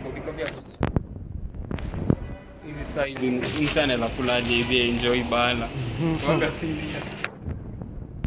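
Plastic bread bags rustle and crinkle in a hand.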